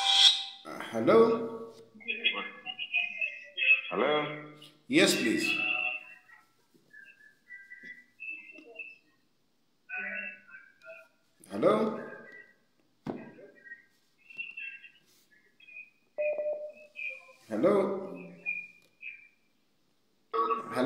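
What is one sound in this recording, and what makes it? A man speaks calmly and close to a phone microphone, with long pauses.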